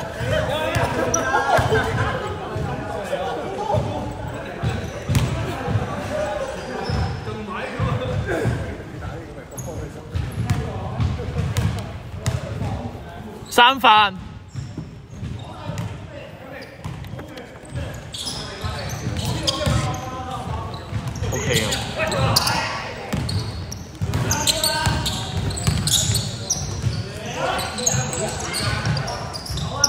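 Men call out to each other across an echoing hall.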